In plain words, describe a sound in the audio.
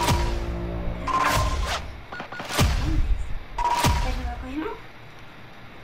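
Game interface chimes and whooshes ring out as points are tallied.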